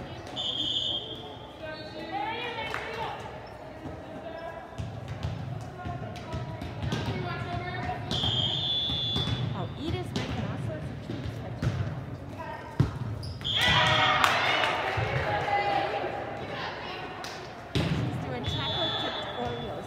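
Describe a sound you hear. Shoes squeak on the gym floor.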